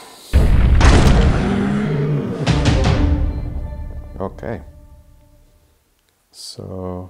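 A short triumphant fanfare plays and fades.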